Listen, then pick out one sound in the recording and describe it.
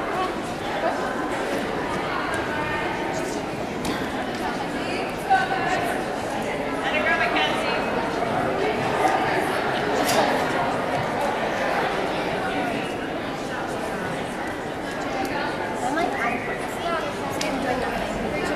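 Feet thud on a balance beam.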